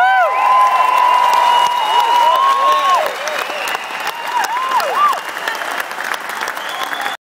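Electronic keyboard tones ring out loudly through a concert sound system, sliding and swooping in pitch.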